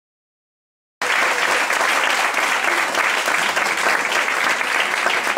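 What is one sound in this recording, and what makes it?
An audience claps and applauds steadily.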